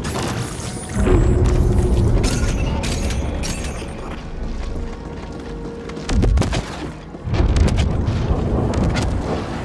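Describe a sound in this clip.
Heavy explosions boom with deep rumbles.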